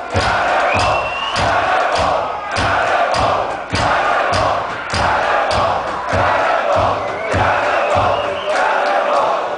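Drums pound in a fast, heavy beat.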